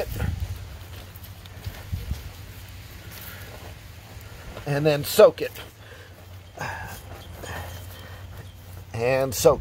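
A hand pats and presses loose soil.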